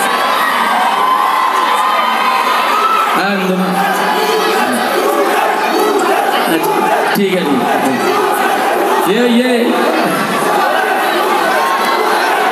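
A man raps loudly into a microphone over a loudspeaker in a large echoing hall.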